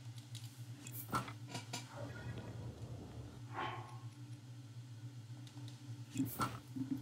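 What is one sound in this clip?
Short game menu blips sound as items are selected.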